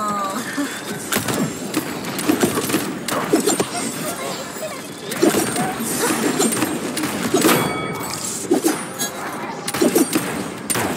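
An energy gun fires rapid zapping shots.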